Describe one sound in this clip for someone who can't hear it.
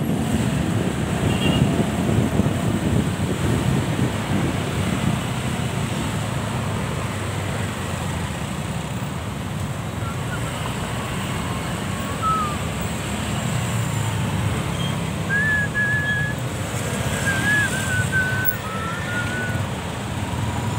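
Traffic hums and drones all around.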